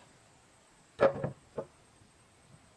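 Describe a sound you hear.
Wooden planks knock and clatter against each other.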